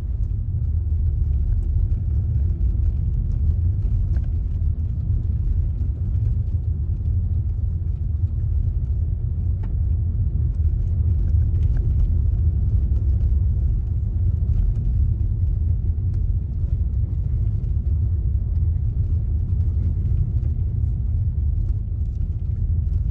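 A car's engine rumbles low and steady from inside the car.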